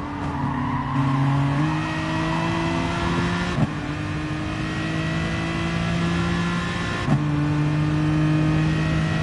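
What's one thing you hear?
A racing car engine roars steadily and climbs in pitch as it speeds up.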